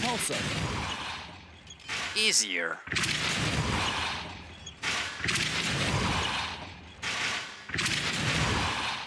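A magic spell crackles and whooshes in bursts.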